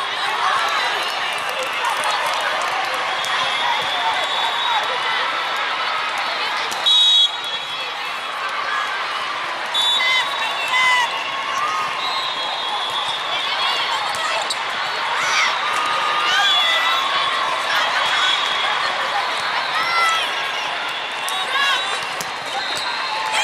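A large crowd chatters in a big echoing hall.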